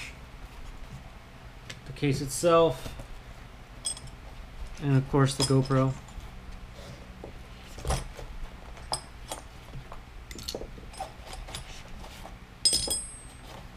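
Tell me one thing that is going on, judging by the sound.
Small plastic parts click as they are set down.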